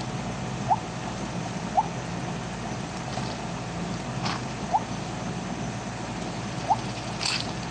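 Short bright game chimes ring out as items are collected.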